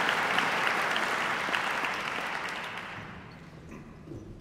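An audience applauds in a large echoing hall, then the clapping dies away.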